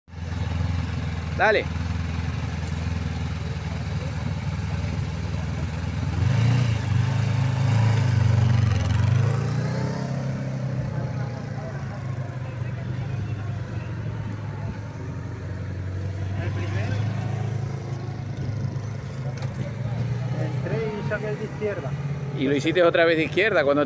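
A motorcycle engine idles, then revs and rumbles as the bike rides around.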